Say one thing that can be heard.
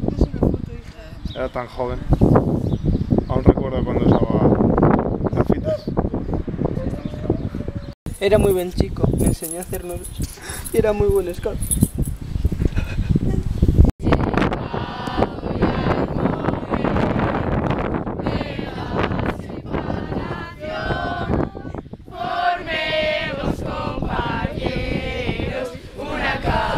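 A group of children chatter and laugh nearby.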